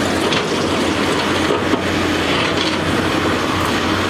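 Rocks thud and scrape as an excavator bucket drops them.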